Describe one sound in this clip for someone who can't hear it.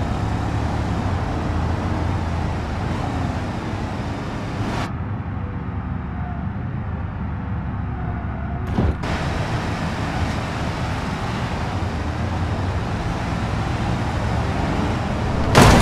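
A car engine roars steadily as it drives.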